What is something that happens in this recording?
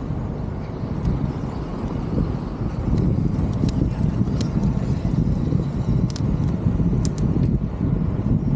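A bicycle's gears and chain click and rattle.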